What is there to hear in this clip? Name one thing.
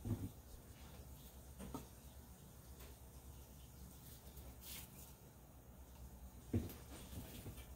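Plastic cups knock lightly on a table.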